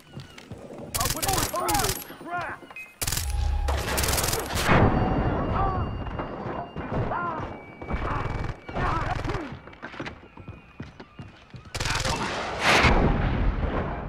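A rifle fires loud, sharp shots in bursts.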